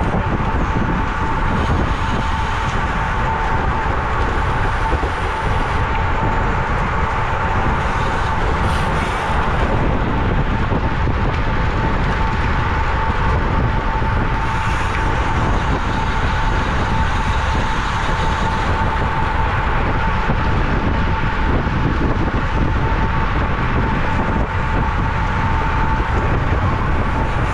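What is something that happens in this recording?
Strong wind buffets loudly past a moving cyclist.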